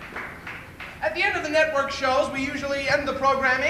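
A man speaks clearly through a microphone to an audience.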